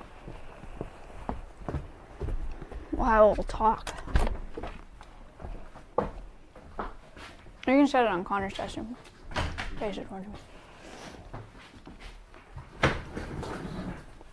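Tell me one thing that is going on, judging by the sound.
Footsteps thump on wooden stairs and floors.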